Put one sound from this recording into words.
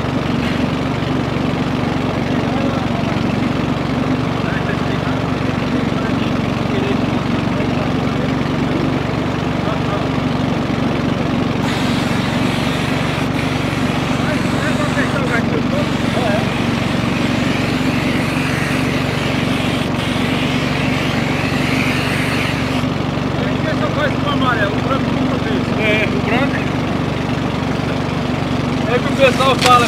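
An engine hums steadily close by.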